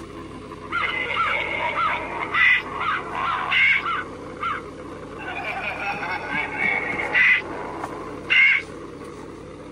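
An animatronic figure speaks in a spooky, distorted voice through a small loudspeaker.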